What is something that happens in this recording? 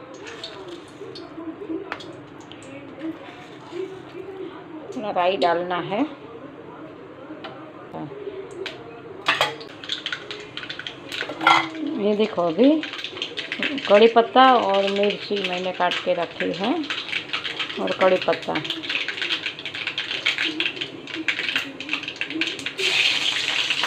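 Oil sizzles softly in a pan.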